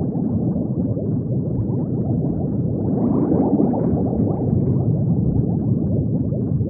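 Bubbles gurgle and burble steadily underwater.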